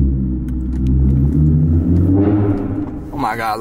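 A car engine hums low and revs up, echoing in an enclosed space.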